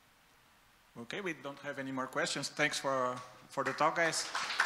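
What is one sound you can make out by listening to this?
A man speaks through a microphone in a large room.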